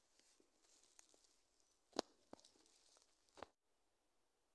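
Branches and dry leaves rustle and snap close by.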